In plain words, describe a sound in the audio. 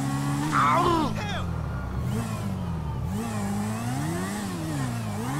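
A motorcycle engine idles and revs up and down.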